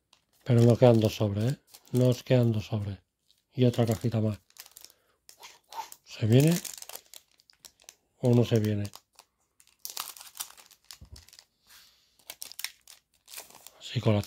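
A foil wrapper crinkles and rustles as it is handled and torn open.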